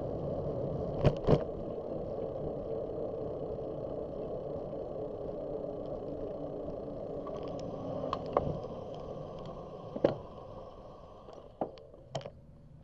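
Wind and road noise rush past a moving bicycle.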